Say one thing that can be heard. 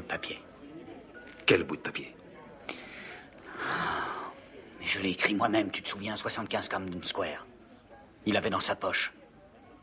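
A man speaks close by in a low, urgent voice.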